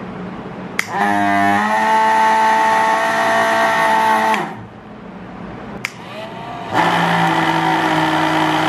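A small motor inside a cardboard box hums steadily, starting and stopping.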